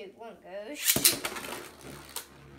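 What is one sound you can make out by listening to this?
A spinning top is launched with a quick ripping zip.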